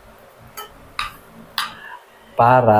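Metal spoon and fork clink against a plate.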